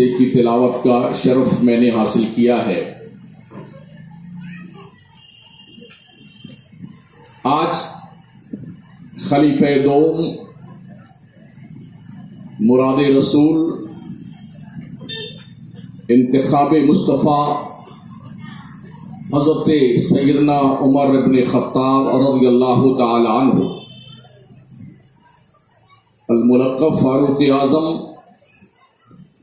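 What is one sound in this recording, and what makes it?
A man recites in a melodic voice through a loudspeaker, in long phrases with pauses.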